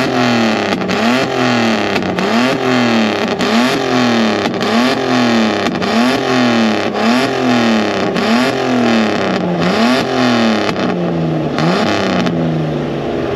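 Exhaust pops and bangs sharply between revs.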